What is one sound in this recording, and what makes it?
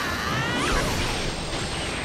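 A swirling ball of energy whirs and crackles.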